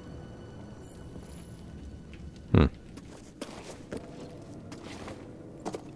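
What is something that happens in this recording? Footsteps thud on rocky ground.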